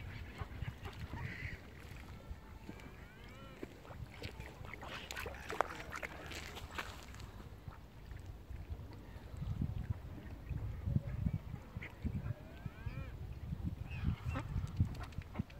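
Ducks quack nearby.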